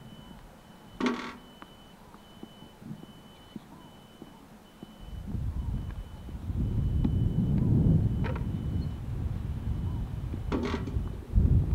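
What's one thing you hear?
Tennis balls bounce with sharp thuds on the ground.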